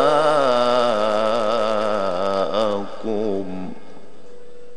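A man chants a slow, melodic recitation through a microphone and loudspeaker.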